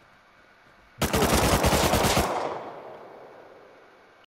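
A rifle fires a rapid burst that echoes away.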